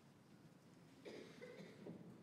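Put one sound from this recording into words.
A choir of young singers sings in a large echoing hall.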